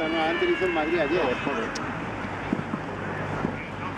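A football is kicked hard.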